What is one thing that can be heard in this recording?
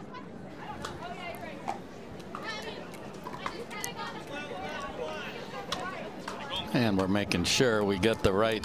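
A paddle strikes a ball with a sharp pop.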